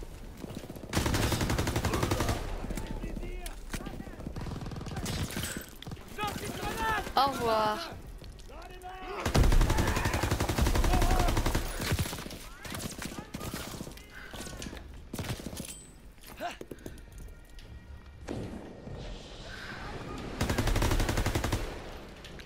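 A submachine gun fires rapid bursts.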